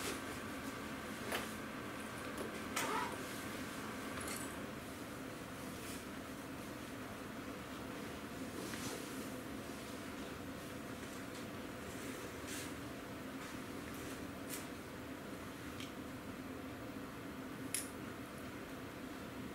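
Small objects clink and tap softly on a hard floor.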